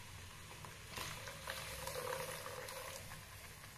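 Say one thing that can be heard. Thick batter pours and splashes softly into a pot.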